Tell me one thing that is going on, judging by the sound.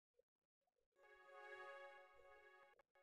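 A short game jingle plays.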